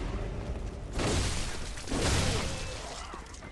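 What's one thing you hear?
A heavy blade slashes and strikes flesh.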